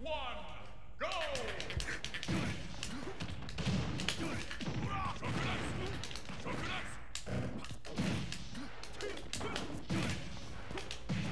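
Punches and kicks land with sharp thuds and blasts.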